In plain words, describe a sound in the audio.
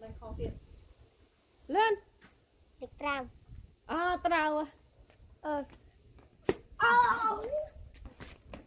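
A young boy speaks close by with animation.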